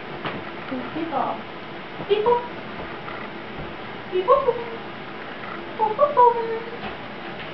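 Kittens mew in short, high cries.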